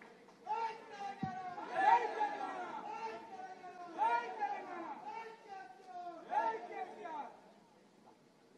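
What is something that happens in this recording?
A man shouts loudly through a microphone.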